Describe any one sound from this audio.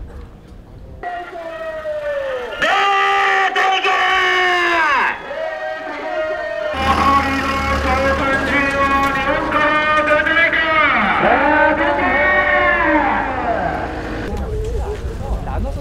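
A voice shouts through a truck's roof loudspeaker.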